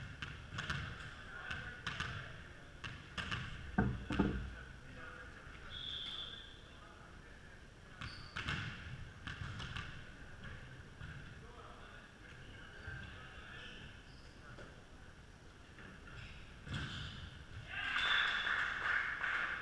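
Shoes squeak on a gym floor, echoing in a large hall.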